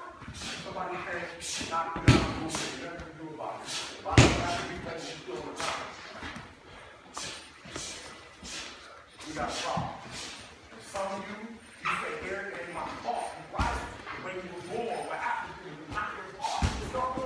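Bodies thud and scuff on a padded mat.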